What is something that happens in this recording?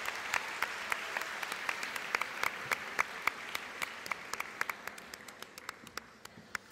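A large crowd applauds in a big echoing hall, the clapping slowly thinning out.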